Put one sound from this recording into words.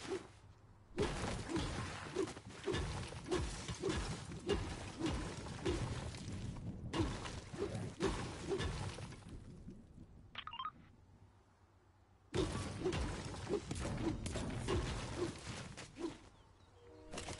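A pickaxe strikes rock in quick, steady blows.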